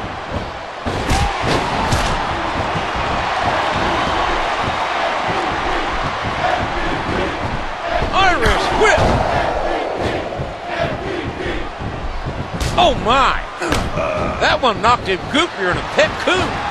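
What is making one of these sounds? Blows and body slams land with sharp thuds.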